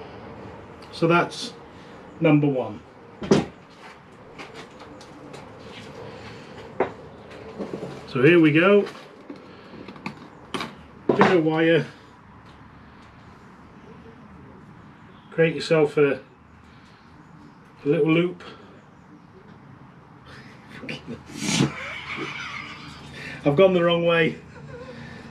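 A middle-aged man talks calmly nearby, in short bursts.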